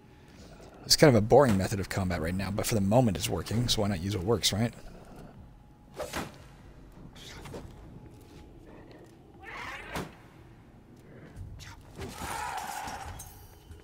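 Swords clash and slash.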